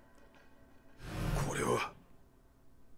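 A man exclaims in surprise.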